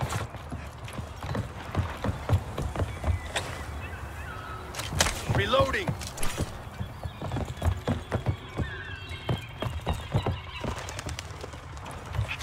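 Footsteps thud quickly on hollow wooden boards.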